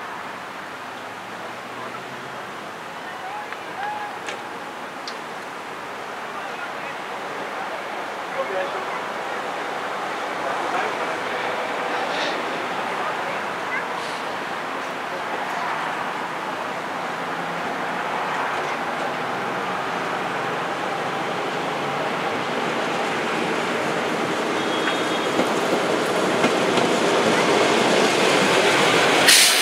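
A railcar engine rumbles as it approaches and grows steadily louder.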